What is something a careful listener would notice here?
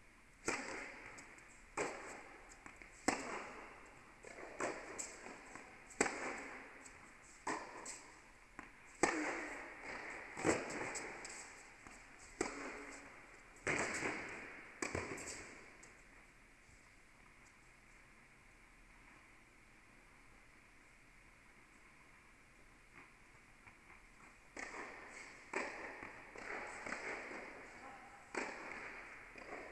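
Tennis balls bounce on a hard court.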